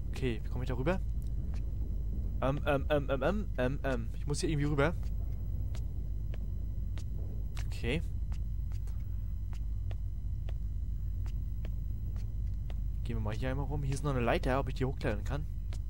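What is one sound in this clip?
Footsteps tread at a steady pace on a hard floor.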